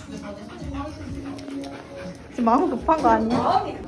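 A dog's claws click on a wooden floor.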